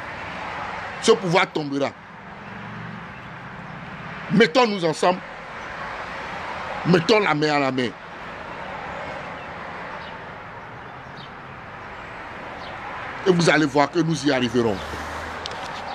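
A middle-aged man speaks close up in short bursts, with pauses between.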